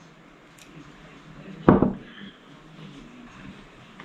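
A glass jar is set down on a table with a knock.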